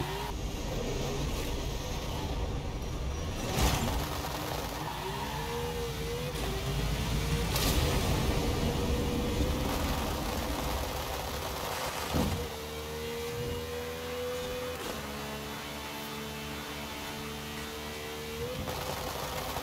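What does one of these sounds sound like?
A sports car engine roars and revs hard as the car accelerates.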